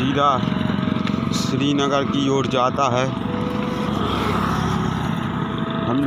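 A motorcycle engine hums as it rides by.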